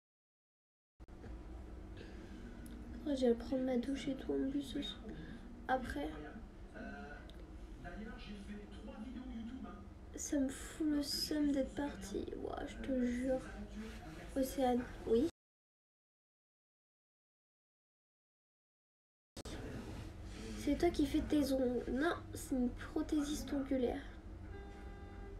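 A young woman talks casually and close up.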